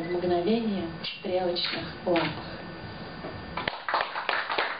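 A woman speaks expressively into a microphone.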